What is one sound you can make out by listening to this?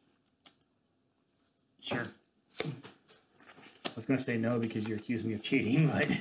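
Playing cards slide and tap on a wooden table.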